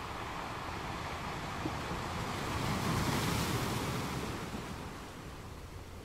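Water washes and fizzes over rocks.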